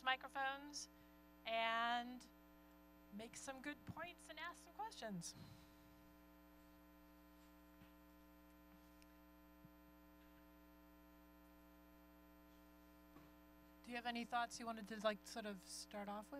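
A woman speaks into a microphone in a large hall, calmly and in bursts with pauses.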